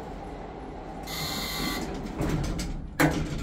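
Elevator doors slide shut.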